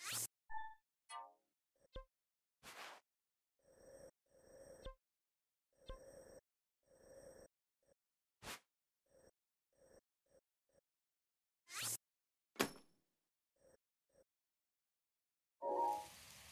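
Short clicks and soft beeps sound as a menu cursor moves.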